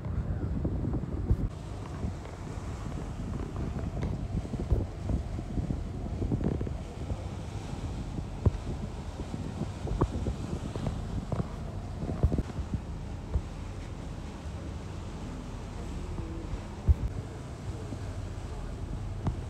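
Wind rumbles and buffets outdoors on an open boat deck.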